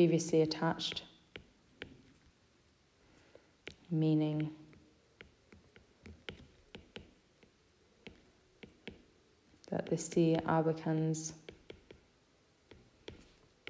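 A stylus taps and scratches on a tablet's glass.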